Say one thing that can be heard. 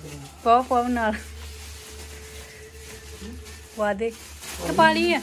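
A girl speaks loudly nearby in short, lively bursts.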